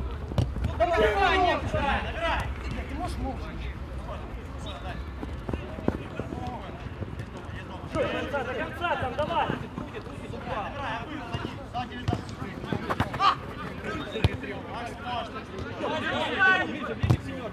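Men shout to each other outdoors across an open pitch.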